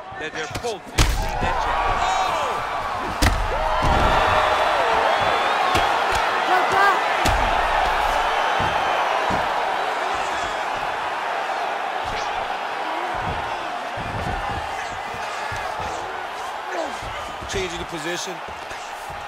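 A large crowd roars and cheers.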